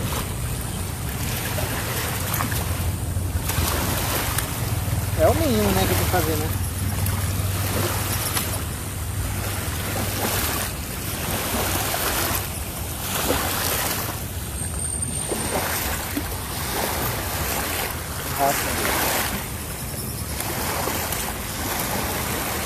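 Small waves wash and lap against the shore.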